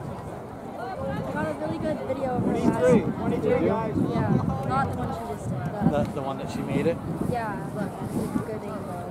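Teenagers cheer and shout loudly.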